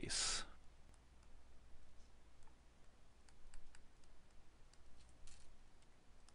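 A pen taps and scratches lightly while writing.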